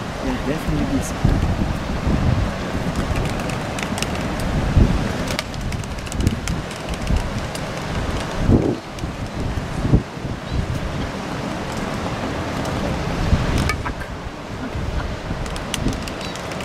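Albatrosses clack their bills together in quick bursts.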